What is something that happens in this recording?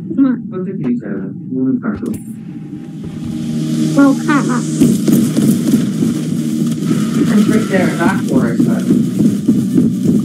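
A young man talks through an online call.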